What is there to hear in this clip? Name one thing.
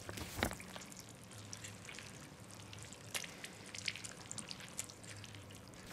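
A sheet of paper rustles.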